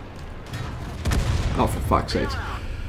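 A shell explodes with a heavy blast.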